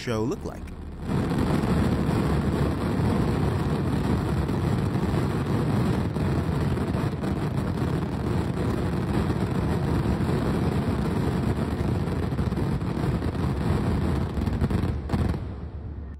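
Fireworks crackle and pop rapidly in the fire.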